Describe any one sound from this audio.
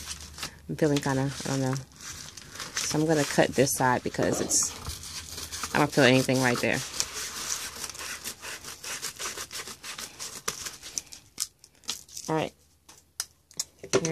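A padded paper envelope crinkles and rustles as hands handle it.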